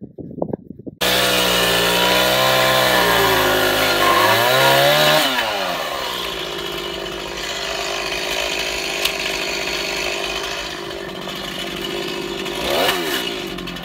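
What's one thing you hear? A chainsaw engine runs nearby, revving up and down.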